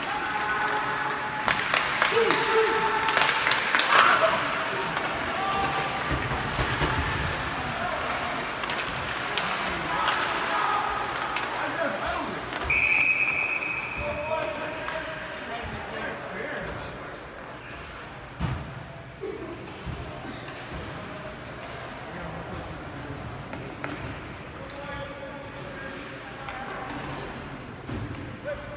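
Young players shout to each other across the ice.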